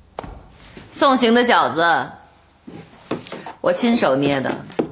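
A woman speaks firmly and close by.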